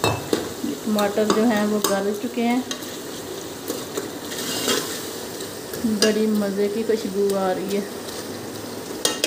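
A metal ladle scrapes and knocks against a metal pot.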